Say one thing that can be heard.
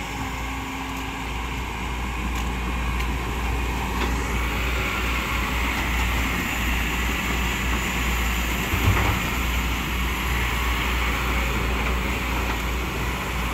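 A diesel hydraulic excavator engine rumbles while digging.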